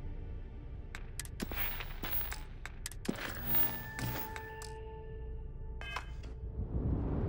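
Short electronic beeps and clicks sound in quick succession.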